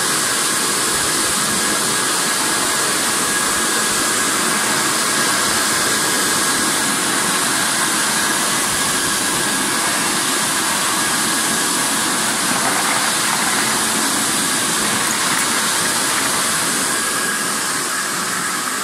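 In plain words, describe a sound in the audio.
A conveyor machine hums and rattles steadily.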